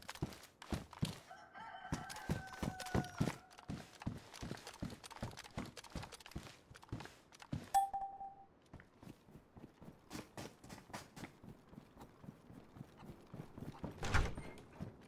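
Footsteps thud steadily on hard floors and stairs.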